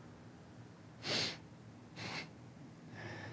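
A man clears his throat and breathes sharply.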